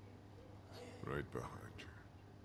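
A man speaks briefly and hesitantly, close by.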